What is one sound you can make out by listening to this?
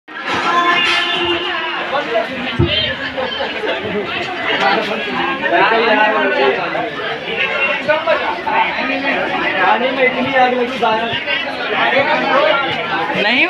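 A crowd of young people chatters and shouts outdoors close by.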